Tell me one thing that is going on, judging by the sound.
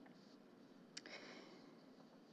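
Paper rustles close to a microphone.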